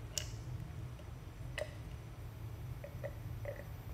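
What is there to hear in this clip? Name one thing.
A young woman sips a drink through a straw close by.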